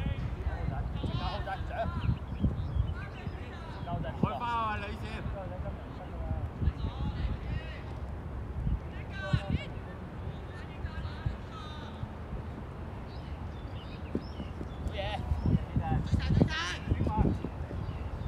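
Young players shout to each other across an open pitch.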